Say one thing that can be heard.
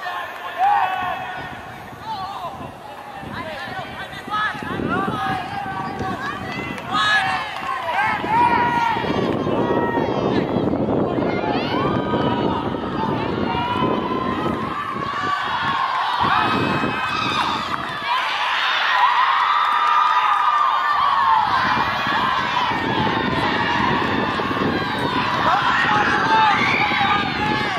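Young men shout to each other across an outdoor field.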